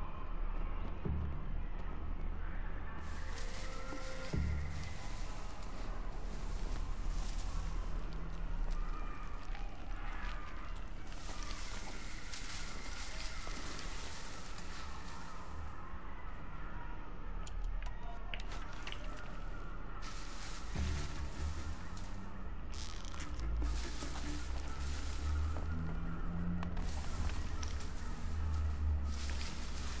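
Footsteps crunch and leaves rustle as someone pushes through dense plants.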